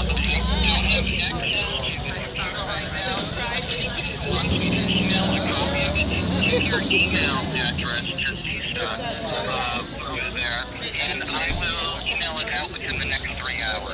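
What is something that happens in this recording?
An elderly man talks quietly and closely into a microphone.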